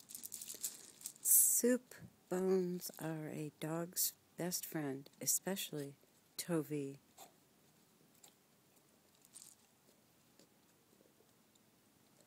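A dog gnaws and chews on a toy.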